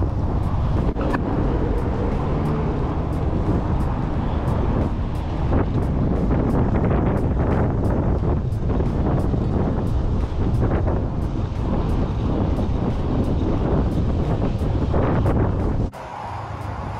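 Bicycle tyres roll over pavement.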